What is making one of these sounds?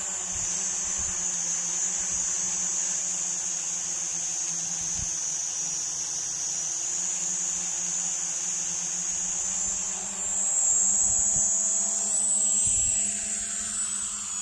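Drone propellers whine steadily, rising slightly in pitch as it climbs.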